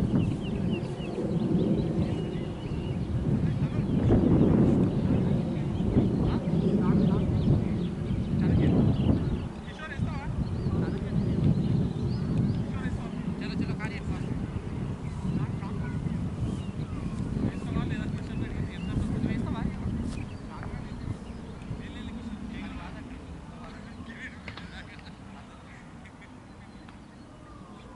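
Wind rumbles across an open field.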